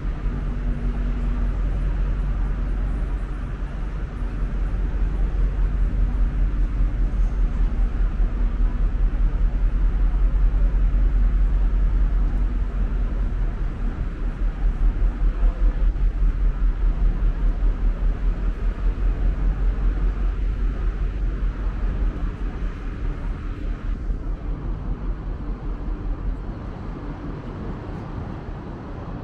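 Footsteps tap steadily on pavement outdoors.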